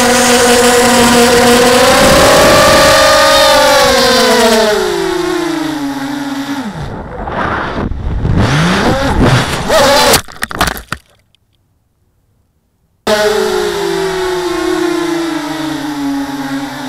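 A small electric motor whines loudly, its pitch rising and falling.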